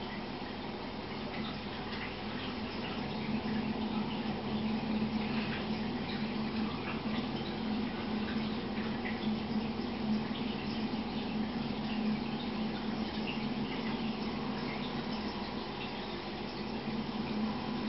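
Water bubbles and trickles steadily in a fish tank.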